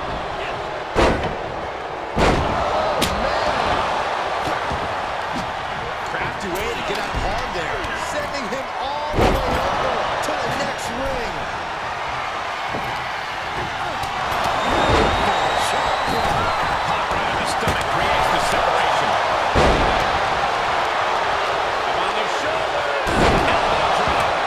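Heavy thuds of bodies slamming onto a wrestling ring's mat.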